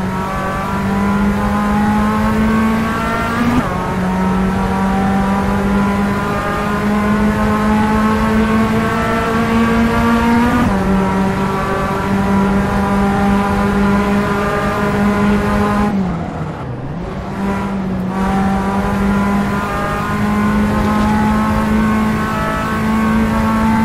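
A race car engine revs hard, rising and dropping sharply with each gear change.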